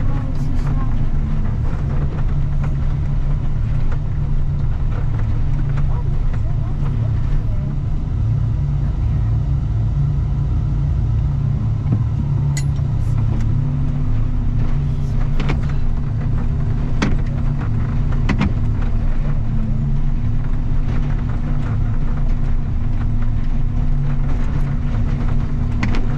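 A heavy vehicle's diesel engine rumbles steadily close by.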